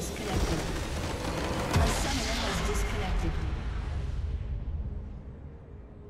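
Game spell effects burst and crash loudly.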